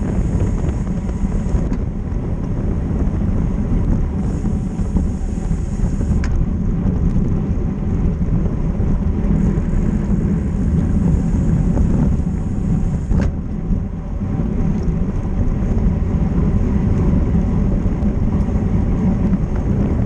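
Wind rushes and buffets loudly against a moving bicycle.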